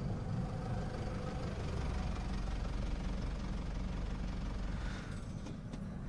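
A car rolls slowly past with a low hum.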